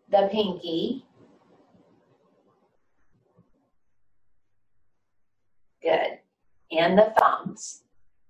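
An elderly woman speaks calmly and clearly, close by, in short phrases.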